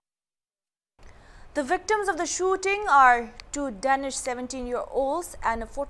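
A young woman speaks calmly and clearly into a microphone.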